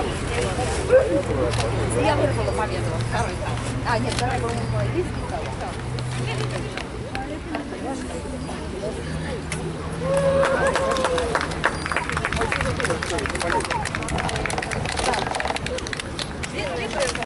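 A crowd of men and women chatter in the distance, outdoors.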